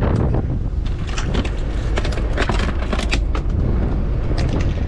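Shells clatter and rattle in a plastic crate.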